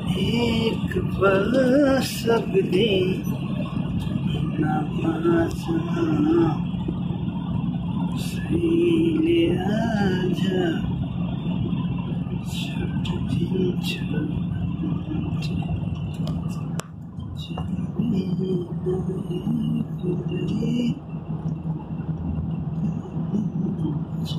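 A vehicle's engine hums, heard from inside while driving at speed.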